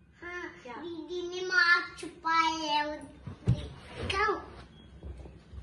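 A young girl talks and laughs in a high voice up close.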